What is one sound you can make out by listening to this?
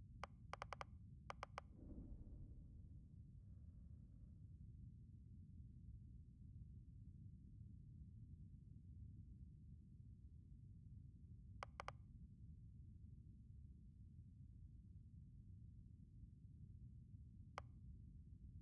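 Short electronic menu clicks sound as options are picked.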